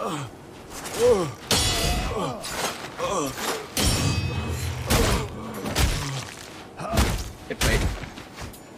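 Swords clash and ring in a fight.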